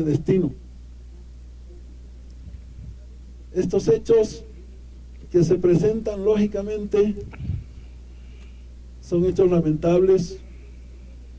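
A middle-aged man speaks into a microphone in short, deliberate phrases outdoors.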